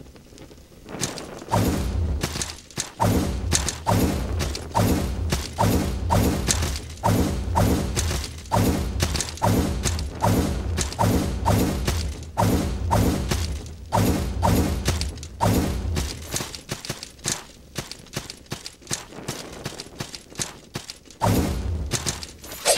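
Heavy weapon blows strike again and again with sharp, booming hits.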